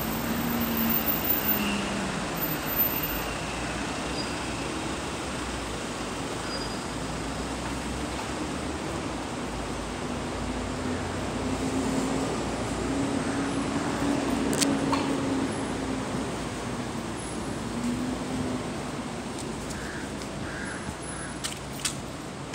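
Cars drive past on the street.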